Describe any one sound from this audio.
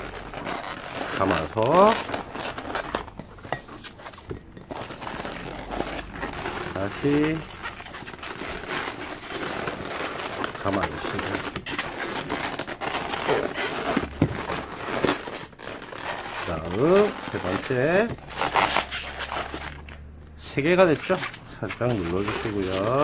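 Balloons rustle and rub against each other as they are handled.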